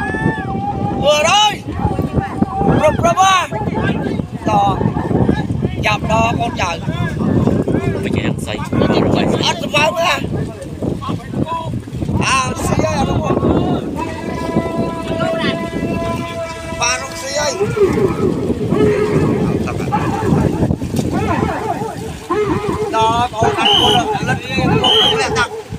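A crowd of men shouts and chants in rhythm.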